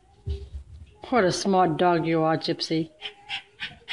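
A dog lets out a long, whining howl.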